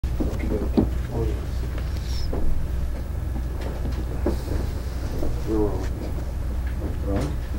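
A middle-aged man speaks calmly and close by.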